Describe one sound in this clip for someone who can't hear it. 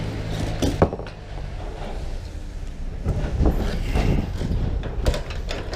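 Ratchet straps rattle and clink as they are handled.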